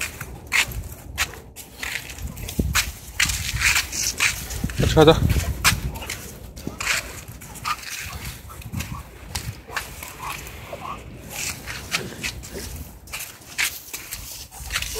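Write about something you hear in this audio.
Dogs scuffle and scrape on the ground close by.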